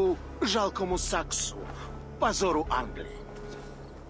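A man speaks harshly and menacingly, close by.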